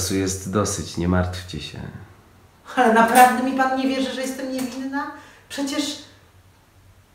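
A woman speaks expressively nearby.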